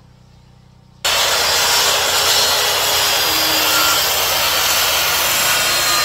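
A circular saw cuts through a wooden post.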